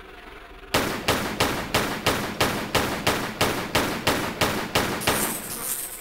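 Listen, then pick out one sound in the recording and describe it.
Pistols fire rapidly with echoing shots.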